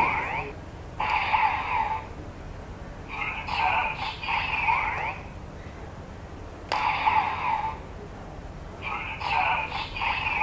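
A toy belt plays loud electronic sound effects and announcements.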